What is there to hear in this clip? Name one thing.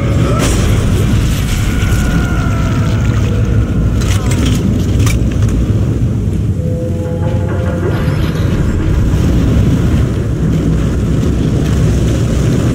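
A low mechanical drone rumbles steadily.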